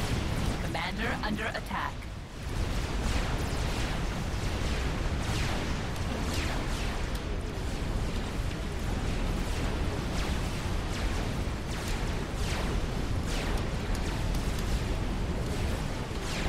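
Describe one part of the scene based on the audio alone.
Laser weapons fire in rapid bursts amid a battle.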